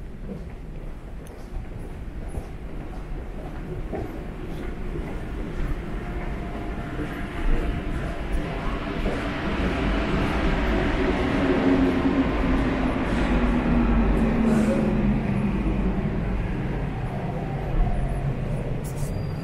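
Footsteps tap on a hard floor in an echoing tunnel.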